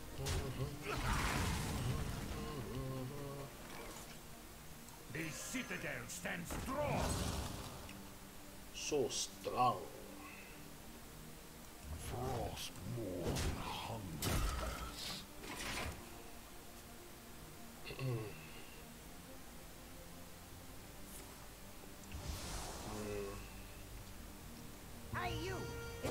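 Magical chimes and whooshes sound as cards are played in a game.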